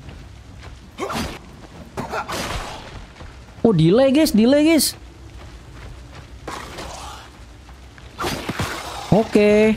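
A blade swishes and strikes in quick sharp hits.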